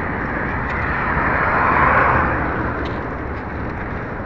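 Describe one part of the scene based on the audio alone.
A car passes close by with a rising and fading whoosh.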